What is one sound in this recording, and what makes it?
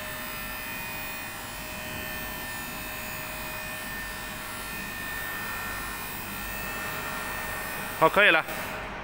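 A hydraulic lift's motor hums steadily as the platform rises.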